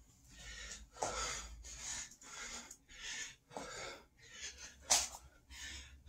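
Feet thump on a hard floor as a man jumps and lands.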